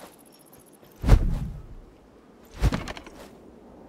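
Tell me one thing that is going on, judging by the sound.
Heavy blows thud against a wooden door.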